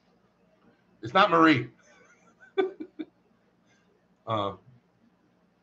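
A man laughs briefly.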